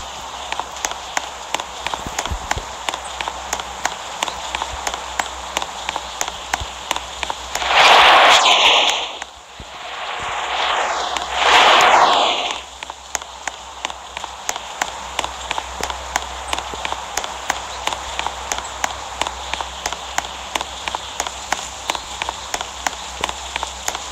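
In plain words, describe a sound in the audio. Quick, light footsteps run across a hard surface.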